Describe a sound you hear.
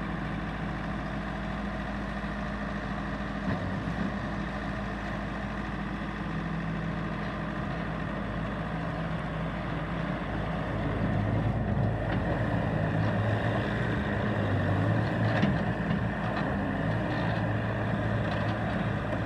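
A skid steer loader's diesel engine runs and revs up and down.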